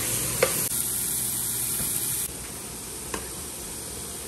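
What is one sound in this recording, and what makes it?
A metal spoon clinks against a pot.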